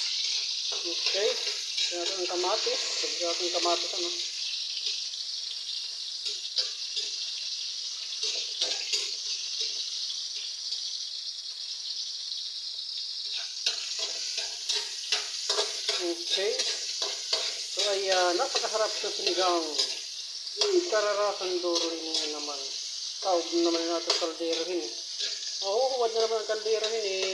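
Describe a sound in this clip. Food sizzles steadily in hot oil.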